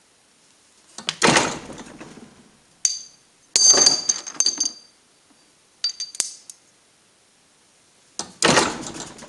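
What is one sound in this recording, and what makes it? A press slams down onto metal with a loud thump.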